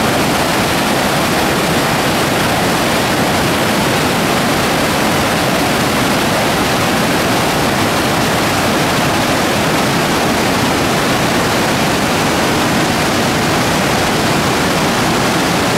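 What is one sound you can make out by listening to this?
River rapids rush and roar loudly over rocks, close by.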